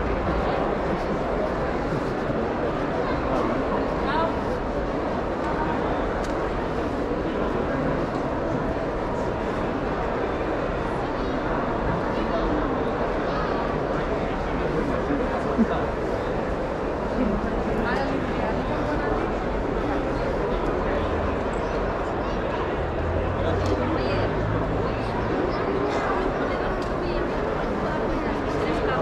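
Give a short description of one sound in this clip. A crowd of people murmurs and chatters throughout a large echoing hall.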